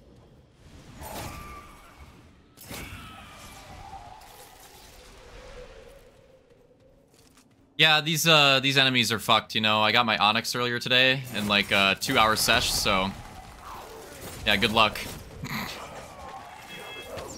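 Sword slashes and magic blasts crash in a fight.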